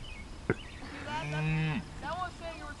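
A cow moos loudly nearby.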